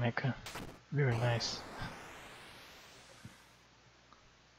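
A jet engine roars as the robot takes off.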